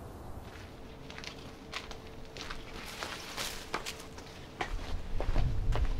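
Dry plant roots rustle and crackle as they are handled.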